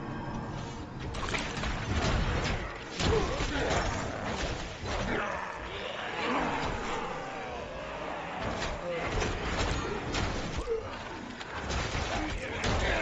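Game combat sounds clash and crack as a character fights monsters.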